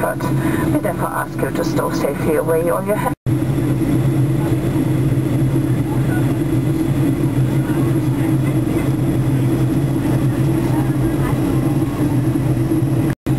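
A jet engine drones steadily, heard from inside an airliner cabin.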